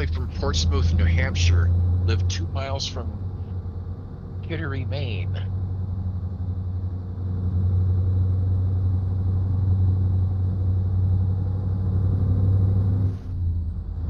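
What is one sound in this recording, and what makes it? A truck engine hums steadily and low.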